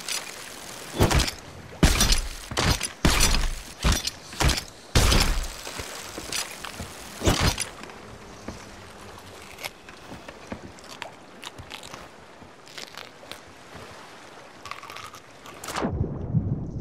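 Rough sea waves crash and splash loudly in strong wind.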